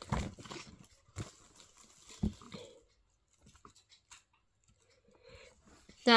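Paper rustles as a card is handled.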